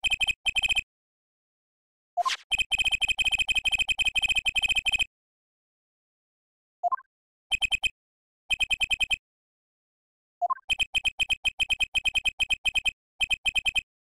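Rapid electronic blips tick in quick bursts.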